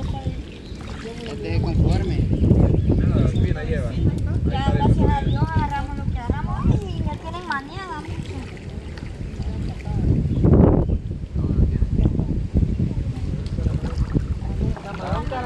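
Water splashes and sloshes as people wade through a stream.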